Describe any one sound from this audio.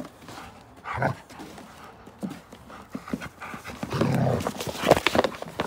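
A large dog sniffs close by.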